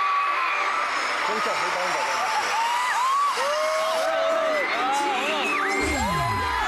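A large crowd of young women screams and cheers loudly in a big echoing arena.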